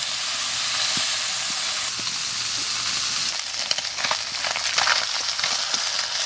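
Small fish sizzle and crackle as they fry in hot oil.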